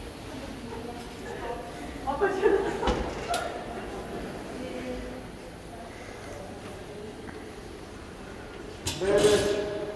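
Several adults talk through face masks.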